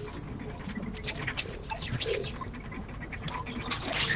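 A character gulps a drink.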